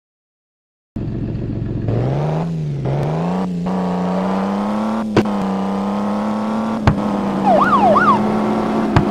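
A car engine revs up and hums steadily as the car speeds up.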